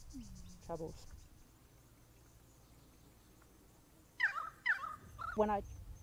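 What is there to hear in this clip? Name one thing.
A possum laps water from a glass.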